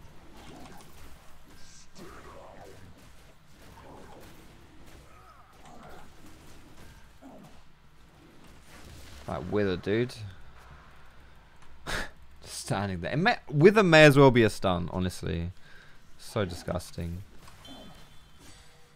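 Fantasy battle effects whoosh and clash.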